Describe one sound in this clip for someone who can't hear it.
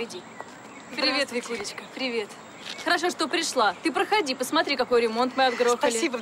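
A woman talks cheerfully up close.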